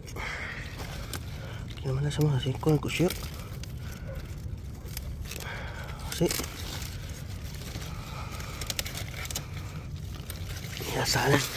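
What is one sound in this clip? Crisp plant stalks snap and rustle as they are pulled off by hand.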